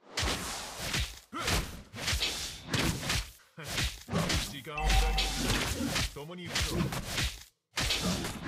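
Magic blasts and hits crackle in a fight.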